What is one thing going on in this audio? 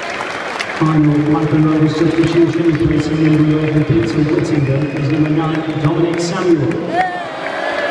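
A large stadium crowd sings loudly together in a chant.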